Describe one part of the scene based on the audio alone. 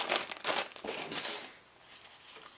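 A paper package crinkles as it is handled.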